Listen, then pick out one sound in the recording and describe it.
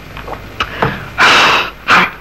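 A man shouts.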